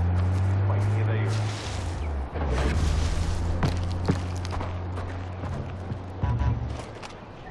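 A truck engine rumbles nearby and fades.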